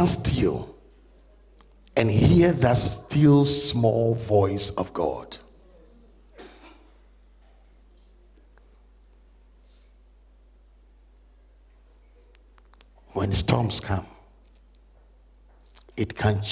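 A middle-aged man speaks with animation into a close microphone, pausing at length.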